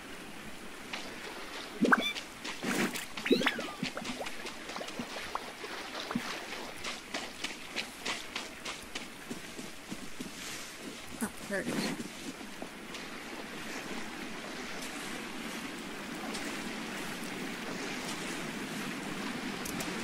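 Water splashes under quick footsteps.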